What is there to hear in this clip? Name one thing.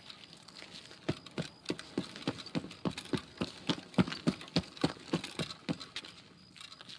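Running footsteps thud quickly and loudly on the ground.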